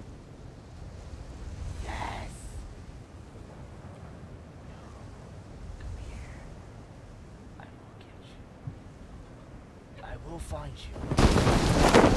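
Wind rushes steadily past a parachute as it glides down.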